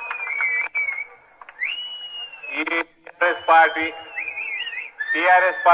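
A man speaks forcefully into a microphone, heard through loudspeakers.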